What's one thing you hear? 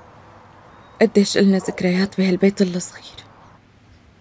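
A young woman speaks loudly and with feeling.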